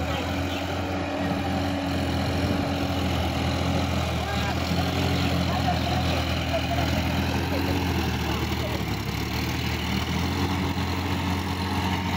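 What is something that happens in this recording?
A tractor engine chugs steadily nearby.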